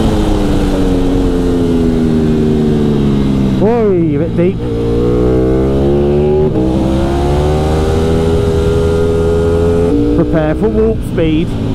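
A motorcycle engine roars loudly, dropping and rising in pitch with quick gear shifts.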